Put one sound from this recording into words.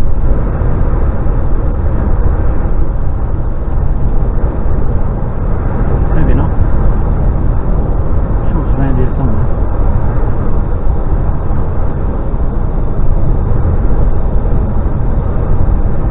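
A vehicle's engine rumbles steadily while driving.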